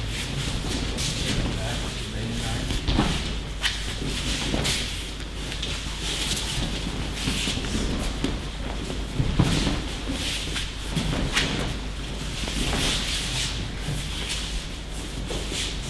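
Bare feet shuffle and slide over mats.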